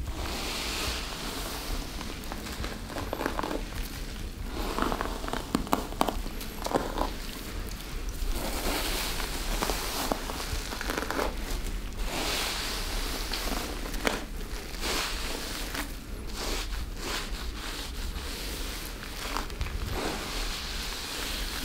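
A brush swishes and rustles through wet hair close by.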